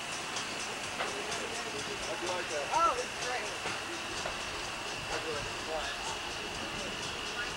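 A young woman shrieks and calls out excitedly, high in the air outdoors.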